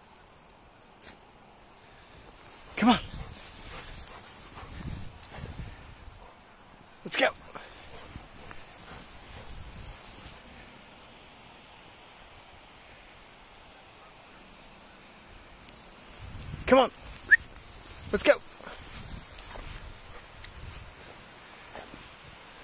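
A dog bounds through deep snow, crunching and swishing it.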